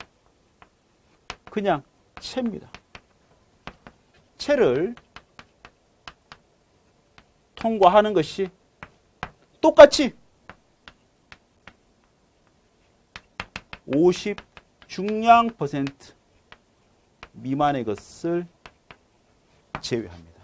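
Chalk taps and scratches on a board.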